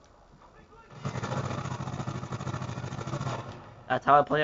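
Automatic gunfire from a video game rattles through a television speaker.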